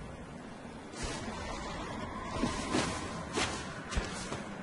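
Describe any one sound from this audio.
A sword swishes and clangs in quick slashes.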